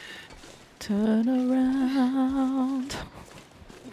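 A young woman hums a wavering tune close to a microphone.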